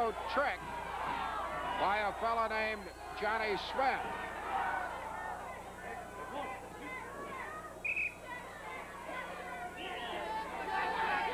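A crowd shouts and cheers throughout a large echoing hall.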